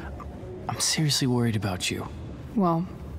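A young man speaks with concern, close by.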